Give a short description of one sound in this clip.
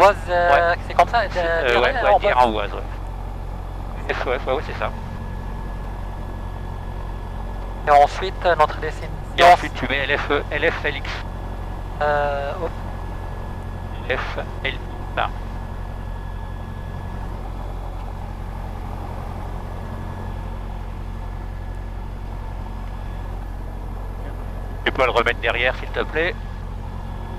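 A man speaks into a headset microphone in short, calm bursts.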